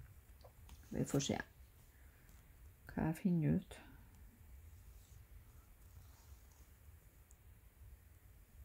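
Thread rasps softly as it is pulled through fabric.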